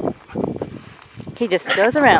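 A dog sniffs at the ground.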